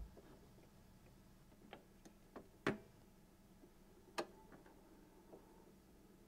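A vinyl record crackles and pops quietly as it spins on a turntable.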